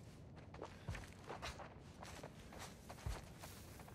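Leaves rustle as someone pushes through plants.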